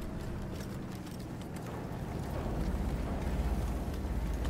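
A tank engine rumbles deeply nearby, growing louder.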